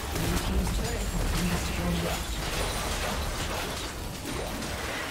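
Video game spell effects crackle and blast during a battle.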